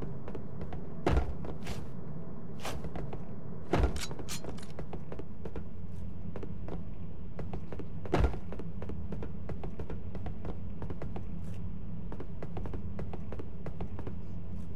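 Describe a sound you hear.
Footsteps tap steadily on a hard metal floor.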